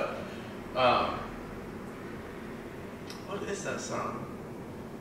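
A man speaks close to a microphone in a casual conversation.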